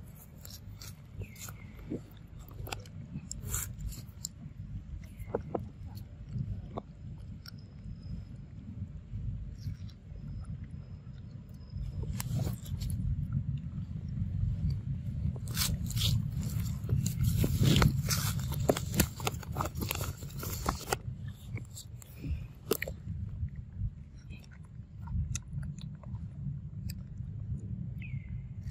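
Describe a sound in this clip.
A monkey chews and smacks on soft fruit up close.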